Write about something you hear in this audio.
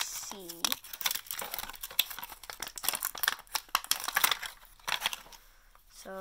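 Sticky slime squelches and crackles as fingers stir and press it.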